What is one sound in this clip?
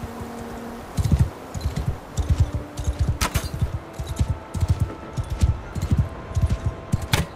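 Horse hooves thud rapidly on a dirt path.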